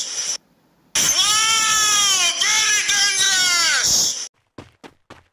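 A man shouts in a long, drawn-out cry, heard through a recording.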